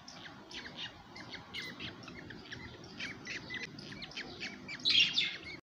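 Baby parrot chicks chirp and squeak rapidly, close by.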